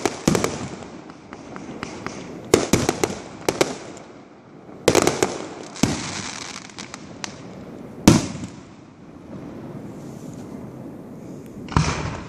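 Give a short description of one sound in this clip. Fireworks burst with loud booms that echo across the night.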